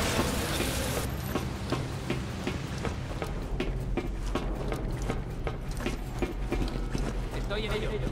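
Footsteps thud quickly up metal stairs.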